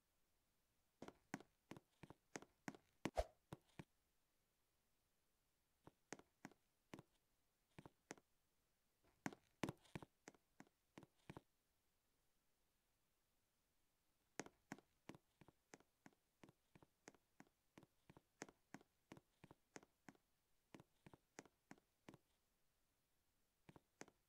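Footsteps patter quickly in short bursts.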